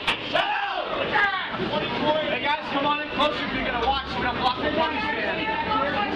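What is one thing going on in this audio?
Many people chatter in a lively, echoing hall.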